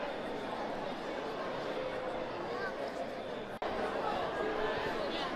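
A large crowd cheers and chatters in a big echoing hall.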